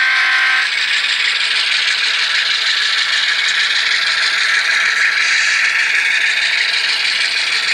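Model train locomotives hum and rattle steadily along the tracks.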